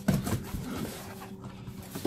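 A knife slices through cardboard tape.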